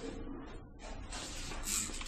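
An eraser rubs on paper.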